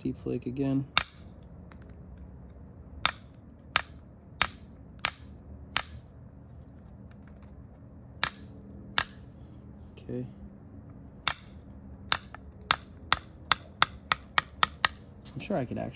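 Sharp clicks ring out as antler presses flakes off a stone.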